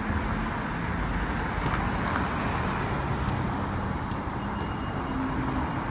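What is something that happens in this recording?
Another sports car drives slowly closer.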